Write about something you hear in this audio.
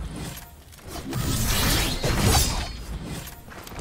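Wind rushes past loudly, then fades.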